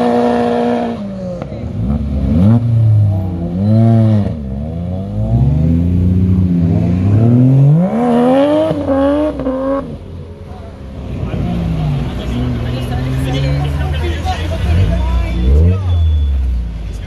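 Car engines rev up and down in quick bursts close by.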